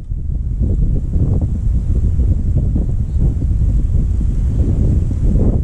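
Wind rumbles steadily across the microphone outdoors.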